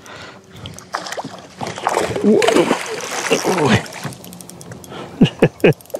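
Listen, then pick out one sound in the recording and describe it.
Water splashes as a fish thrashes at the surface.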